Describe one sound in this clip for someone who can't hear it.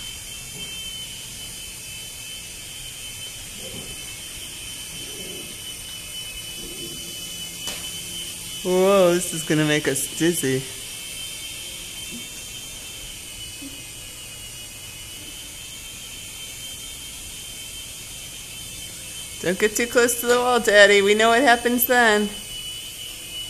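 A small toy drone buzzes steadily overhead.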